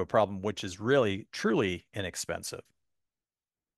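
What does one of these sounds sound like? A man speaks calmly into a microphone, as if lecturing over an online call.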